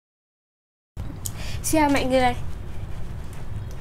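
A young woman speaks cheerfully and close up.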